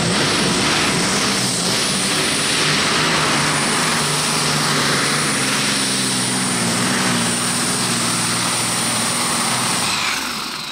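A powerful tractor engine roars loudly and steadily close by.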